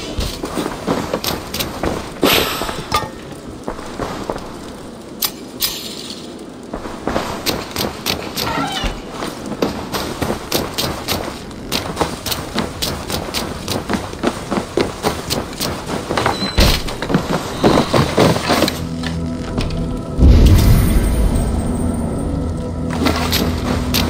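Footsteps thud steadily on wood and earth.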